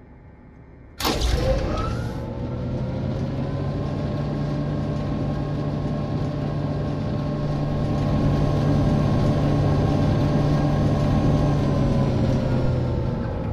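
A machine starts up with a sudden bang and hums loudly and steadily.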